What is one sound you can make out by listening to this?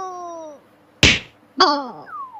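A cartoon cat thuds onto the floor.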